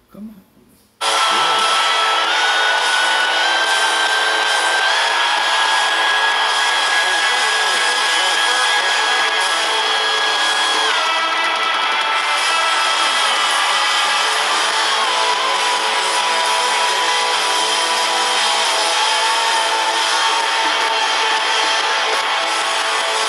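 A rock band plays loudly through a speaker.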